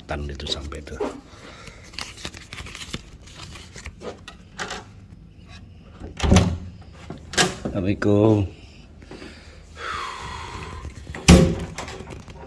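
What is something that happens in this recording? A door lock clicks and a door handle rattles.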